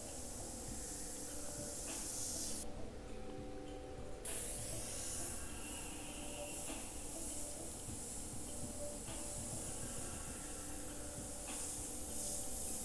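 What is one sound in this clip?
An airbrush hisses steadily in short bursts.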